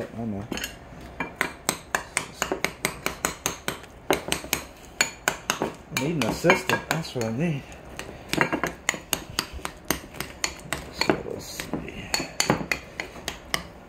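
A spoon mashes avocado in a bowl, clinking and tapping against its sides.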